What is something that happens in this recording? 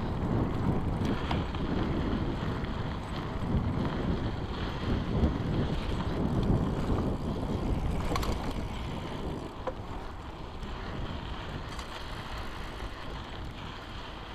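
Bicycle tyres crunch and rattle over a dirt track.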